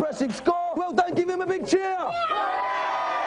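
A young man shouts excitedly into a microphone.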